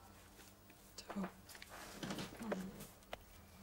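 A young woman speaks softly to someone close by.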